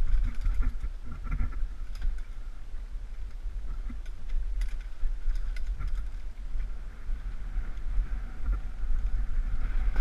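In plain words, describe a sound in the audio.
A bicycle rattles and clatters over bumps.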